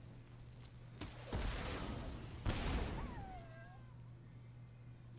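Digital game sound effects whoosh and chime.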